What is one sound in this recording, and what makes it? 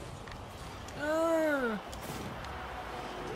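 A game goal explosion bursts with a crackle.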